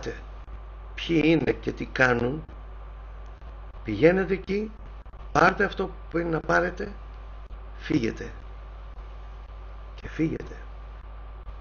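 A middle-aged man speaks calmly in short phrases into a microphone, heard over an online stream.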